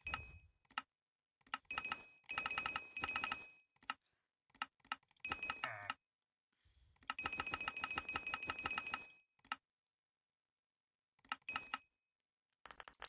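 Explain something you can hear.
Short chiming clicks ring out in quick bursts.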